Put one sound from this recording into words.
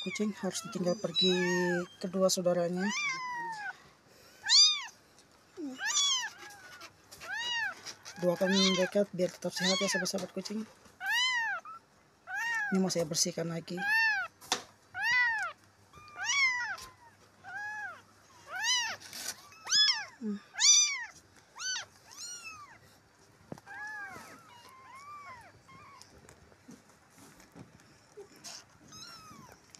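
Young kittens mew in high, thin cries, over and over.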